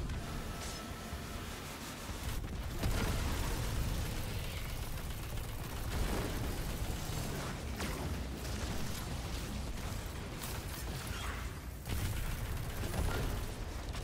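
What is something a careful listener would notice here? Gunfire rattles and booms in rapid bursts.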